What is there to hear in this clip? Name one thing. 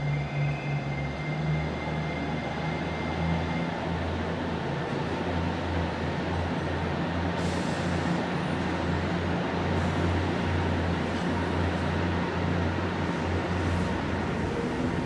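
A train hums while standing still.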